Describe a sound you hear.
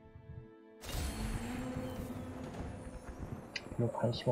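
Game music with a low hum swells in and plays on.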